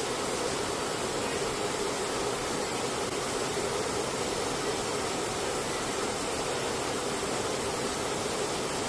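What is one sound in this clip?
Aircraft engines roar loudly and steadily from inside a cargo hold.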